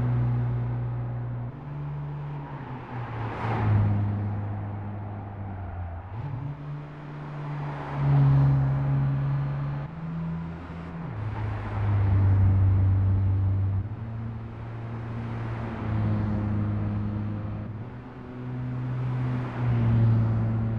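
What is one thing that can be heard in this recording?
A small car's engine hums steadily and shifts pitch as it speeds up and changes gear.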